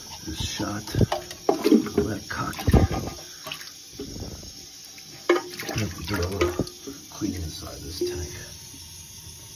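Water splashes and sloshes as a hand stirs it.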